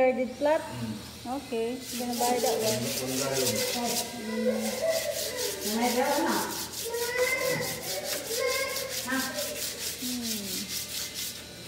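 A brush scrubs back and forth on wood.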